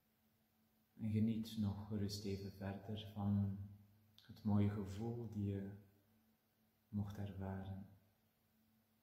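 A middle-aged man speaks calmly and slowly, close by.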